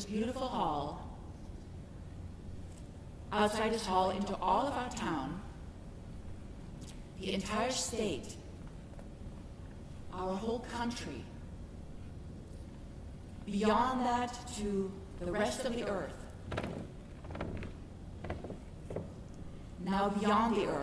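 A woman speaks in short phrases through a microphone in a large hall.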